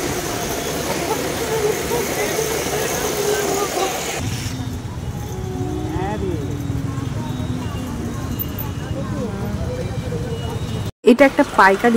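A scooter engine rumbles while riding.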